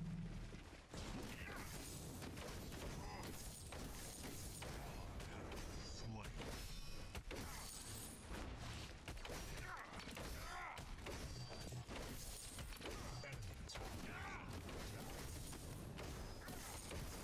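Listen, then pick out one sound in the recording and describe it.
Blades clash and magic blasts crackle in a fast fight.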